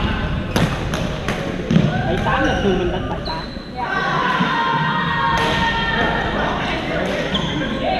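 Players call out and chatter across the hall.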